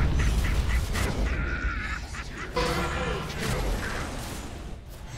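Spell effects crackle and whoosh in a busy fight.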